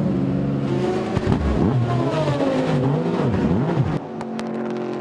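A race car engine revs loudly up close.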